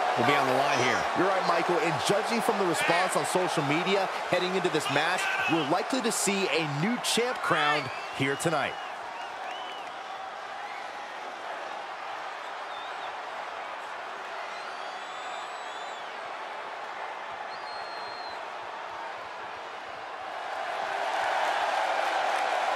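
A large crowd cheers and murmurs in a big echoing arena.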